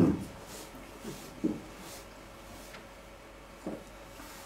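An elderly man swallows water in soft gulps.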